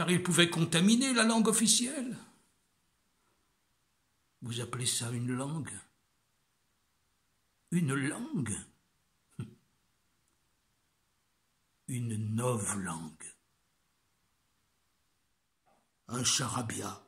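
An elderly man speaks close up, in short bursts with pauses between them.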